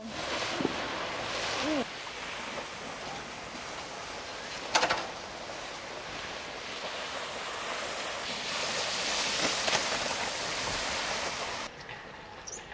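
Water sprays and hisses as a wakeboarder skims across a lake.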